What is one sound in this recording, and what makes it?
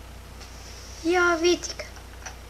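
A boy speaks briefly and loudly, close to a microphone.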